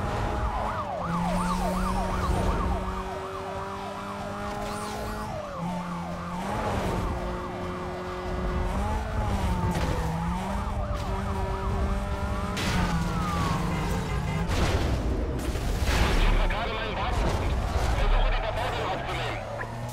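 Cars crash and scrape against each other.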